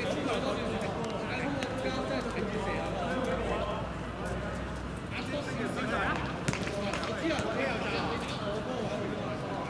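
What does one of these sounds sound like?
Several young men talk and call out to each other outdoors.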